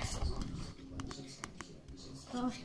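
A small plastic toy taps lightly on a wooden table.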